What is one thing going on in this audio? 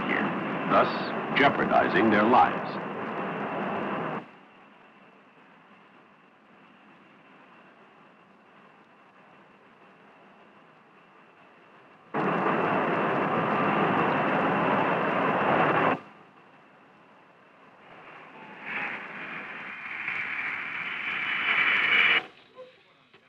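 A jet engine roars loudly nearby.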